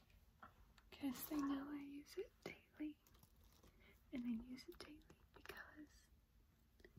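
A young woman speaks quietly, close to the microphone.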